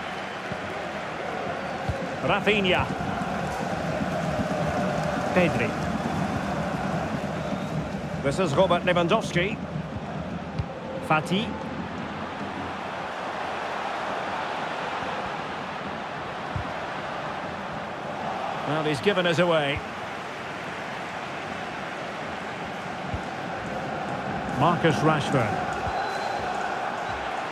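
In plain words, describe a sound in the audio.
A large crowd murmurs and cheers steadily in a stadium.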